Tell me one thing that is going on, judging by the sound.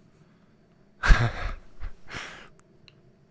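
A woman speaks briefly, close to a microphone.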